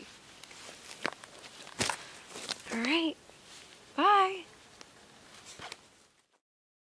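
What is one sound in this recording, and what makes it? A young woman talks cheerfully and laughs close by, outdoors.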